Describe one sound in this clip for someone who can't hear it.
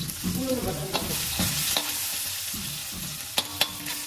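A metal spatula scrapes and clanks against a steel wok.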